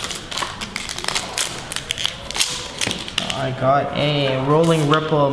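Plastic card sleeves rustle and click as cards are handled.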